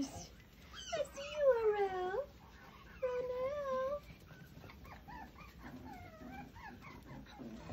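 Puppies chew food from a plate.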